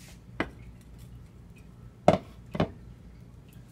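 A metal pot knocks against a stovetop.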